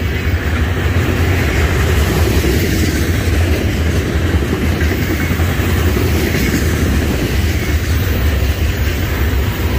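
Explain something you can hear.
Steel wheels clatter on the rails.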